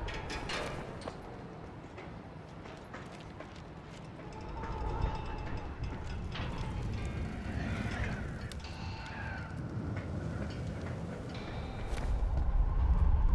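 Wind blows outdoors at a height.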